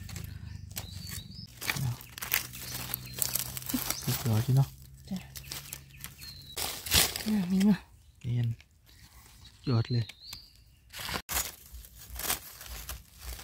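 Dry leaves rustle and crunch as hands dig in the ground.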